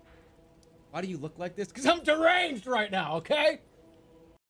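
A young man talks excitedly into a microphone, close by.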